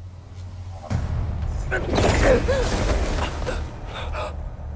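A body falls heavily onto loose rubble.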